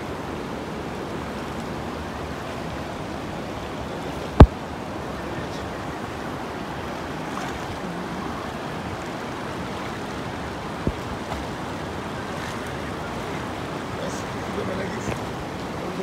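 A river rushes loudly over rocks.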